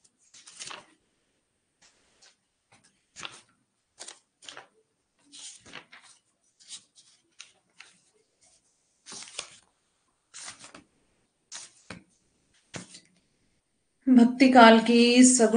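A young woman speaks calmly into a close microphone, reading out.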